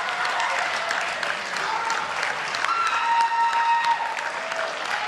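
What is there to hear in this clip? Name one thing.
A choir sings together in a large echoing hall.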